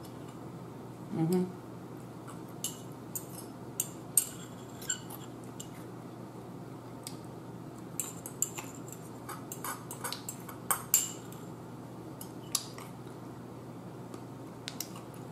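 A woman chews and slurps food close to a microphone.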